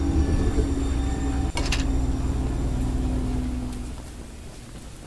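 An engine rumbles steadily, then fades out.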